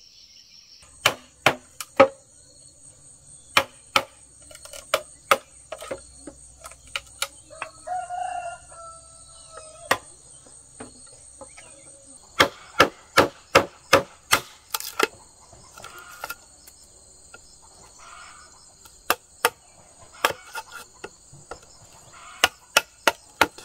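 A knife chops and taps at bamboo with sharp knocks.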